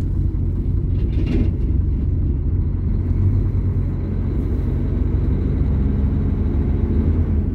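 A vehicle engine rumbles low and steady while driving.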